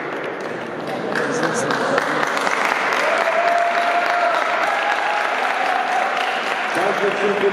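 A man talks calmly nearby in a large echoing hall.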